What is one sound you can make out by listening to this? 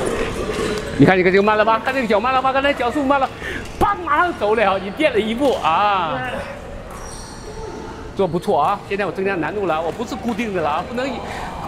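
A man talks with animation nearby in an echoing hall.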